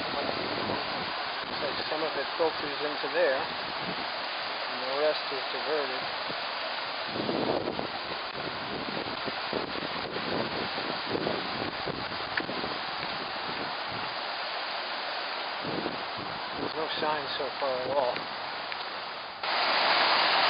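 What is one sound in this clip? Water trickles and splashes gently in the distance.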